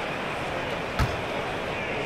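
A basketball bounces once on a hard floor.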